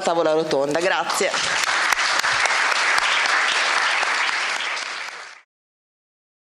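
An audience applauds loudly, then the clapping fades away.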